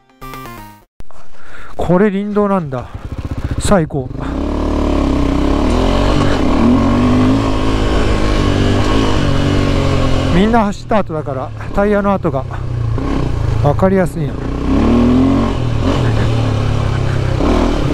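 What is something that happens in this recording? A motorcycle engine rumbles steadily while riding over a dirt track.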